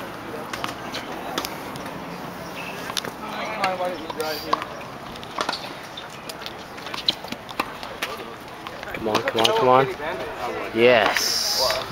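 Tennis balls are struck with rackets in the distance.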